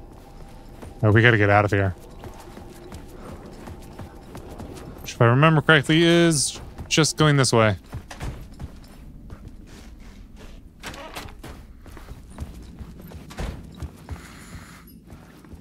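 Footsteps tread slowly on a hard floor.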